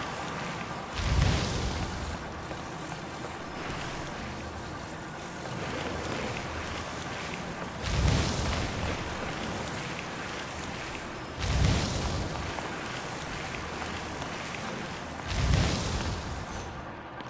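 Gusts of air whoosh in loud bursts every few seconds.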